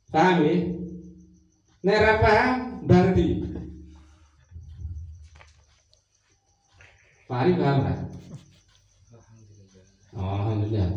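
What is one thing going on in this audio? A man speaks calmly into a microphone in short phrases.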